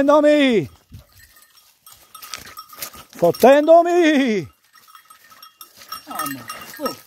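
A dog howls loudly nearby in long falling cries.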